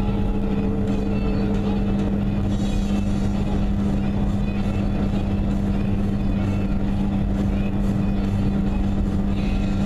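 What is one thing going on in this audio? Tyres rumble on a highway, heard from inside a moving car.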